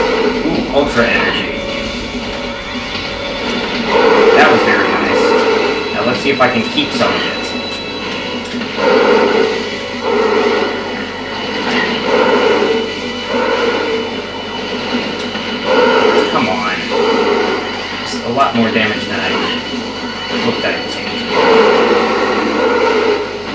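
Video game blasts and energy shots fire in bursts.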